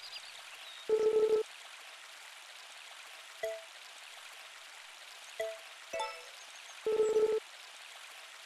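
Short electronic chimes sound now and then.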